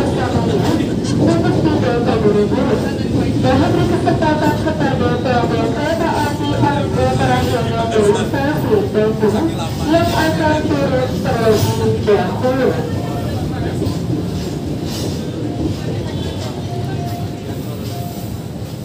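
A train rolls past close by with a steady rumble and clatter.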